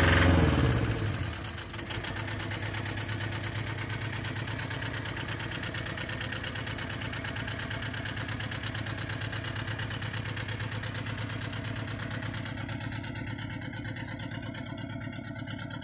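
A diesel scissor lift drives away with its engine at low revs.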